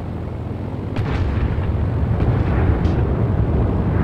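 An aircraft engine roars louder as it revs up.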